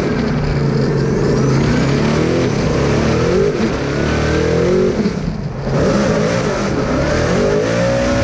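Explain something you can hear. A race car engine roars loudly from inside the cabin, revving up and down.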